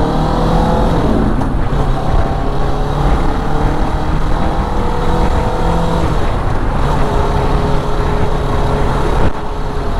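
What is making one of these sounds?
A tanker truck rumbles past close by.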